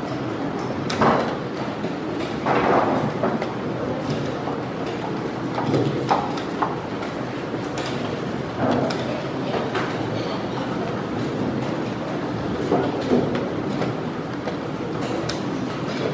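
Chess pieces tap down on a wooden board.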